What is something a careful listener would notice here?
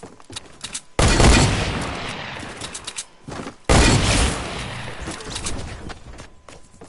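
Gunshots crack loudly in a video game.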